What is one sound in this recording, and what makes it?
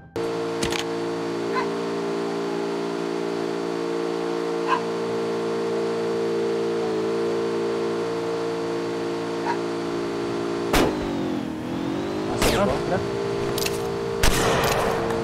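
A vehicle engine drones steadily.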